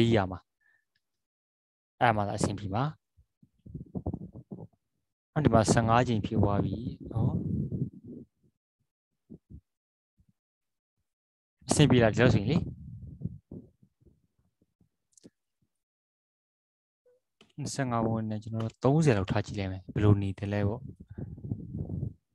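A man talks calmly over an online call, pausing between phrases.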